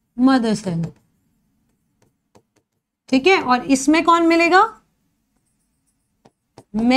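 A young woman speaks clearly into a close microphone, explaining in bursts.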